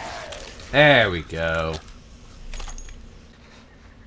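A revolver's cylinder clicks as it is loaded.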